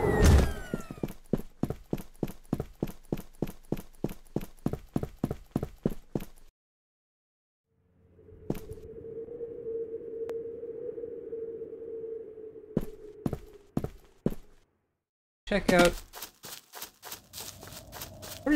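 Footsteps tap quickly and evenly on a hard surface.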